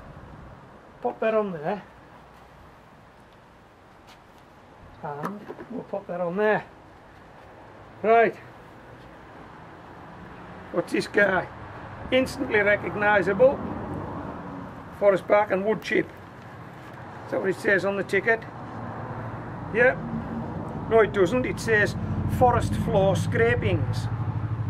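A man talks calmly and close by, explaining.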